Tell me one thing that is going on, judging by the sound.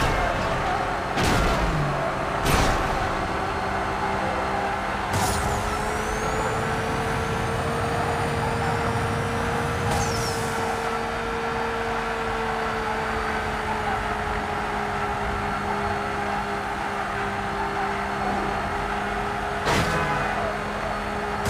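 A race car engine roars at high speed, steady throughout.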